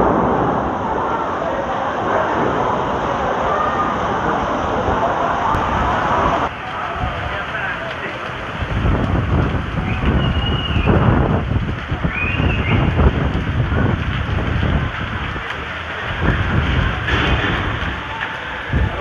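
Heavy rain pours down steadily.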